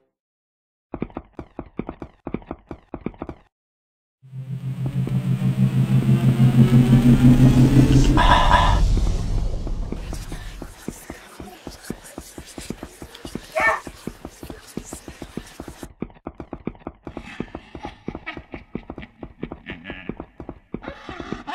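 Footsteps tap quickly on stone.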